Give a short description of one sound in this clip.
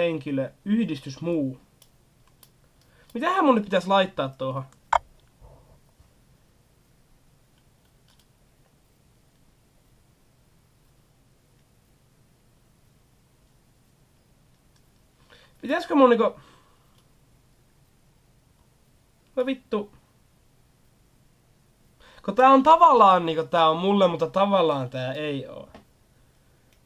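A young man speaks close by, in short bursts with long pauses.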